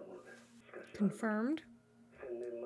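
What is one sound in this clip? A young man nearby makes a short, questioning hum.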